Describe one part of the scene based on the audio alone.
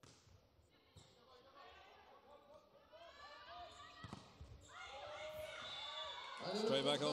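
Young women players shout and call to each other across the court.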